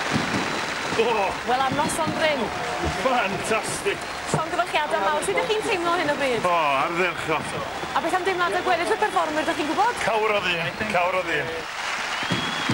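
A man talks cheerfully up close.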